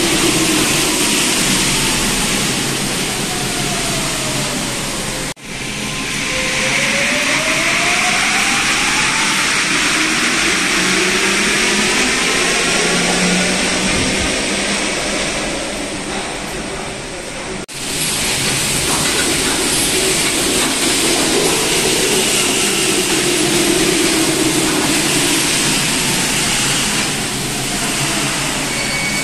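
A subway train's electric motors whine, sliding down and then up in pitch.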